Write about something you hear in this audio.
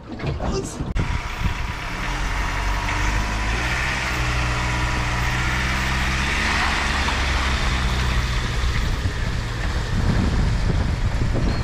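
A car engine hums steadily as it pulls a heavy load.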